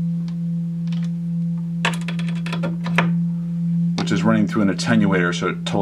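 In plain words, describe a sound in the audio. A synthesizer hums a steady low drone.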